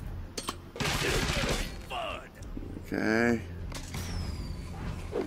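Electronic game sound effects whoosh, chime and burst in quick succession.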